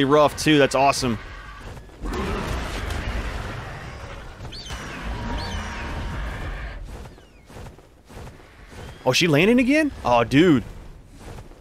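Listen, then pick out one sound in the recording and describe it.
A large creature lets out loud, wavering cries.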